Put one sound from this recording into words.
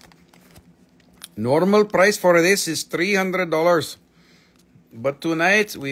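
A plastic bag crinkles softly in hands.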